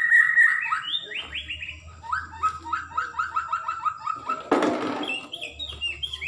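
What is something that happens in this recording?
A caged bird chirps in quick, repeated short notes.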